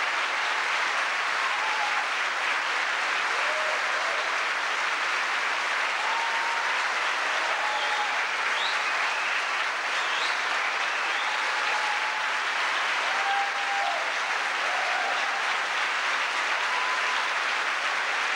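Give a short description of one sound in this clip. People in a large crowd whoop and cheer.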